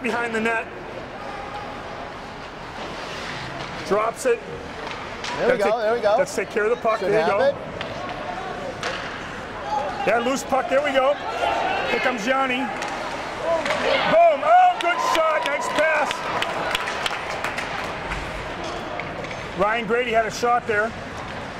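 Spectators shout and call out in an echoing rink.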